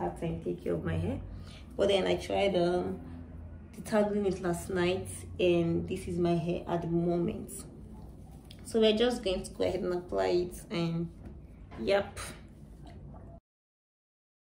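A young woman talks calmly and closely to a microphone.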